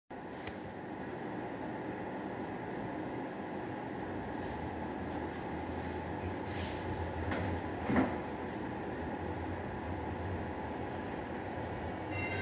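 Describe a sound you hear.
A train rumbles low as it approaches slowly.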